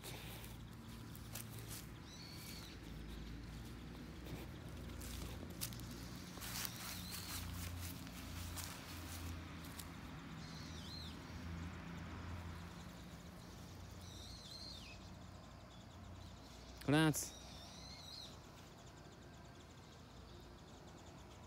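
A dog digs and scratches at soil with its paws.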